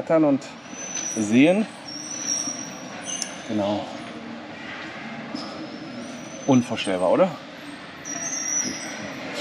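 People murmur faintly in a large echoing hall.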